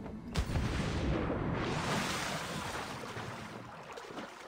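Water churns and sloshes as a swimmer paddles.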